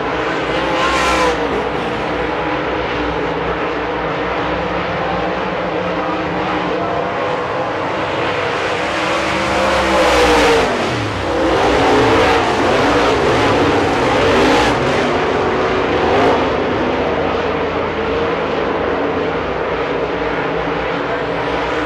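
Race car engines roar loudly as cars speed around a track.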